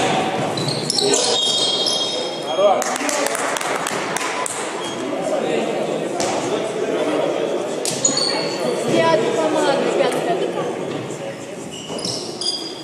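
Young men shout and call out in a large echoing hall.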